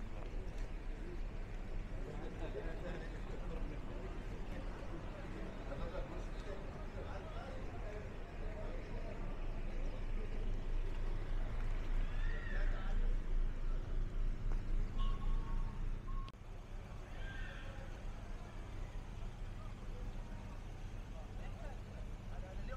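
Distant voices of people chatter outdoors.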